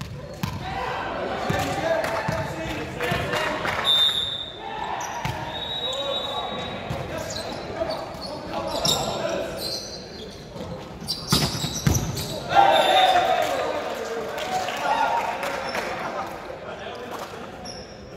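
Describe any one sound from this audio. Young players shout and call out to each other in a large echoing gym.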